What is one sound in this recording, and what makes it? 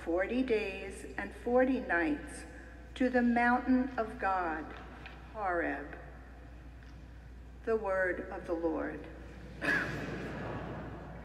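An older woman speaks calmly through a microphone in a large echoing hall.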